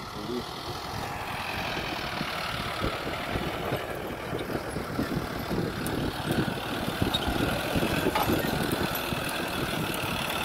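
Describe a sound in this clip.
Clods of soil crunch and thud as a disc plough churns the ground.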